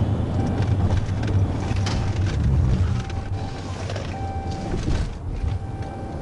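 A car's engine winds down as the car slows.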